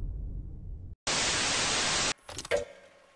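Loud static hisses briefly.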